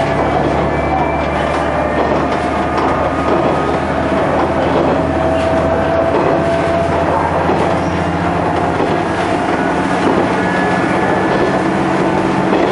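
A diesel engine drones with a low hum.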